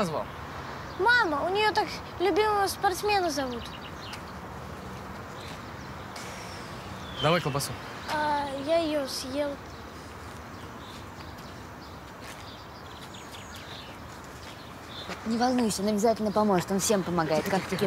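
A teenage boy speaks nearby.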